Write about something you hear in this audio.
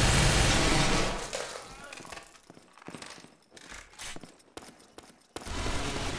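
A rifle magazine is swapped with metallic clicks.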